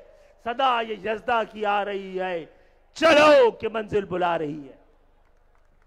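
An elderly man speaks forcefully into a microphone over loudspeakers.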